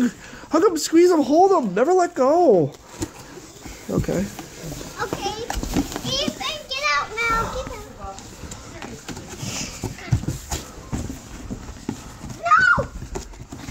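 Cardboard boxes rustle and bump as children climb in them.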